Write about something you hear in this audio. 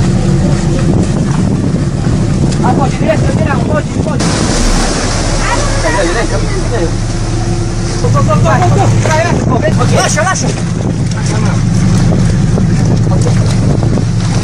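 People in the water shout and cry out in distress.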